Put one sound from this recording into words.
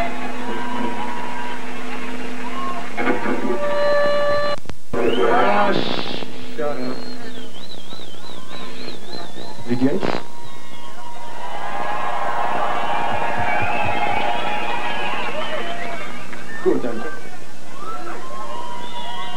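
An electric guitar plays loudly through big speakers outdoors.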